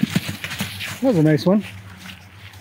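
A horse squeals sharply.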